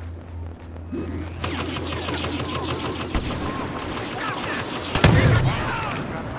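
A blaster fires rapid bursts of shots.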